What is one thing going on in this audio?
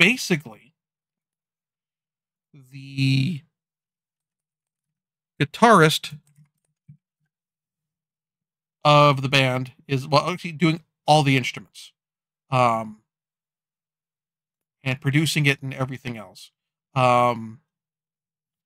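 A middle-aged man speaks calmly and haltingly into a close microphone.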